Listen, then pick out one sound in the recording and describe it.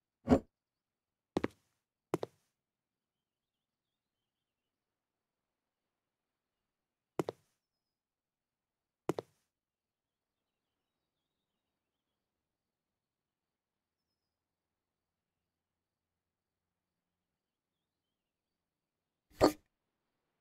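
Objects are picked up and set down with short soft knocks.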